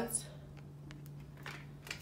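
Plastic snack packets crinkle in a hand.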